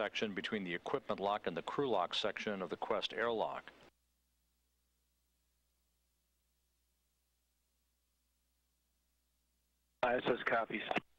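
A man speaks calmly over a radio link.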